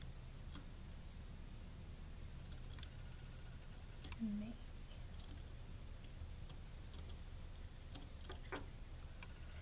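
Small electronic parts click and scrape as fingers push them into a board.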